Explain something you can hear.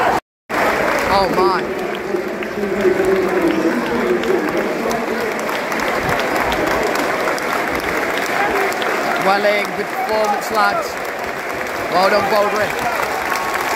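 Fans in the stands sing loudly together.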